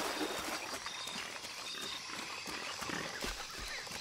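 Leaves and undergrowth rustle as someone pushes through.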